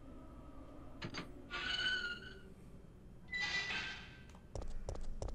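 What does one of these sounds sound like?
A metal gate creaks open and clanks.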